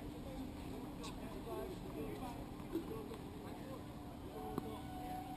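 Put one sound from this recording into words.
A tennis ball is struck sharply with a racket a few times, outdoors.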